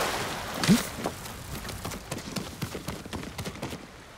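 Footsteps scuff on rock.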